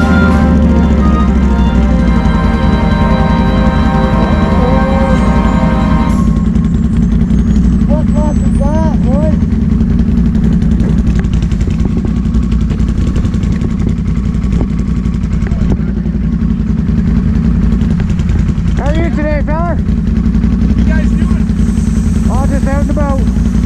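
An all-terrain vehicle engine idles and rumbles close by.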